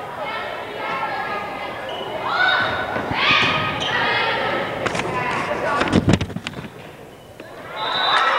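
Young women shout and call out to each other in an echoing gym.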